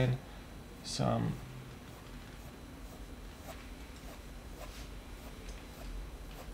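A pencil scratches softly across paper in short strokes.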